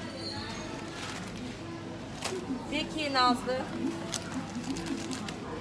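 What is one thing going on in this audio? A plastic packet crinkles as it is handled.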